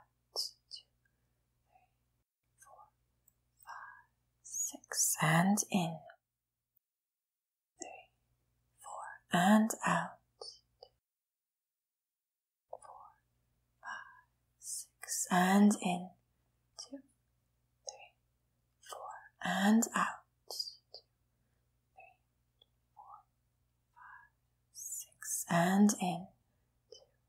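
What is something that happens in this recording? A young woman speaks calmly and slowly, with long pauses, close to a microphone.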